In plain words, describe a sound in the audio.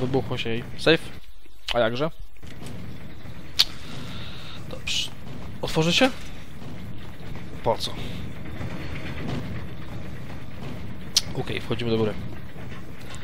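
A young man talks into a headset microphone, close and casual.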